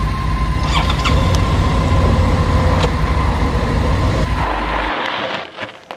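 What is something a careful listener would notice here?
A motorcycle engine idles and rumbles nearby.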